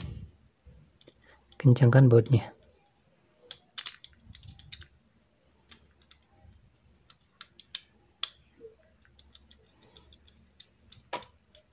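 A small screwdriver clicks and scrapes against a circuit board.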